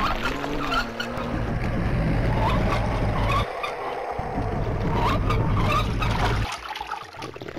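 Water splashes from a hand pump.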